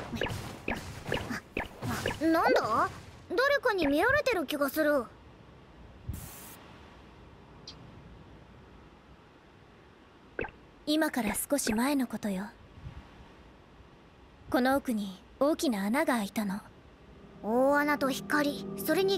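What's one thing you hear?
A small creature speaks in a high, animated voice.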